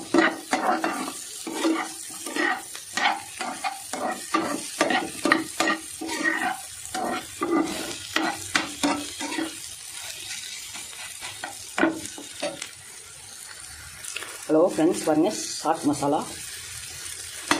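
Food sizzles softly in a hot pan.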